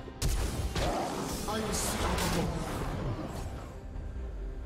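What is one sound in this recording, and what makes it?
Game sword slashes whoosh and crackle with magic effects.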